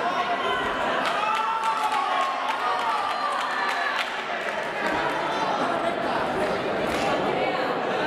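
Boxing gloves thud against a fighter's body and head.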